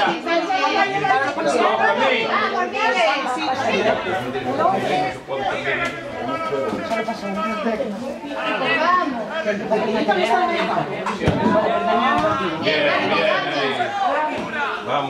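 Young players shout and call out to each other across an open outdoor pitch.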